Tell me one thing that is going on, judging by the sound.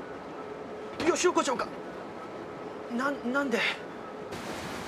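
A young man exclaims in surprise.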